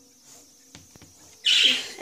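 Chalk scratches on a chalkboard.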